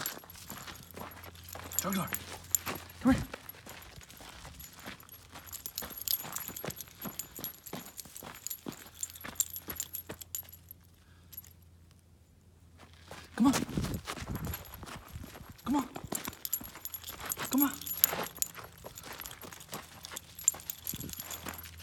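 Dog paws patter and scuff on dry dirt.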